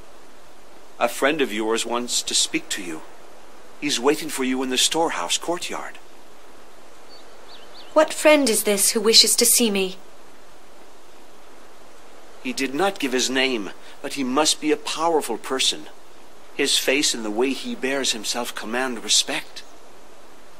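A man speaks calmly and clearly, close by, in short phrases.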